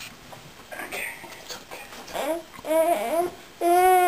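A small child babbles and cries out close by.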